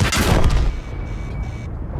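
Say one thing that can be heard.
A loud explosion booms and then rumbles away.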